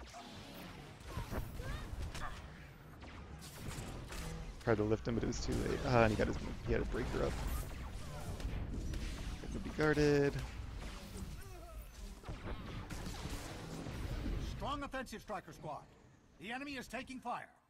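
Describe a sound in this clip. Blasters and energy weapons fire and crackle in a fight.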